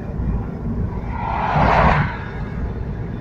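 An oncoming truck whooshes past.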